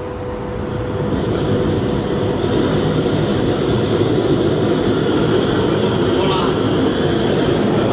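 A gas torch roars steadily with its flame.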